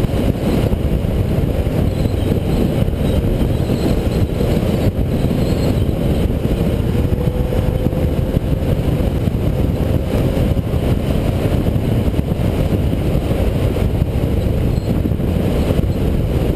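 Wind roars loudly past the microphone at speed.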